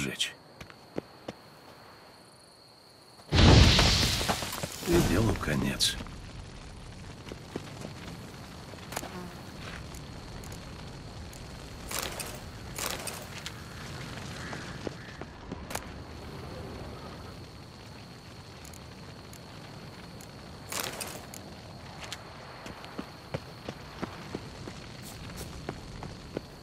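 Footsteps run over stony ground.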